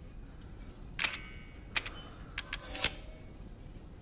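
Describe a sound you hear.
Short sharp clicks sound as menu items are selected.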